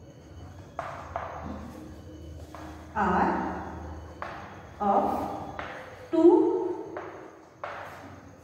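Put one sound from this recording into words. A young woman speaks calmly and clearly in a slightly echoing room.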